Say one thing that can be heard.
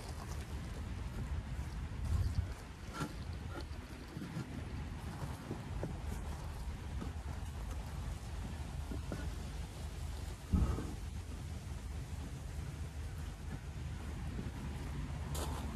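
Heavy stone blocks scrape and knock against each other.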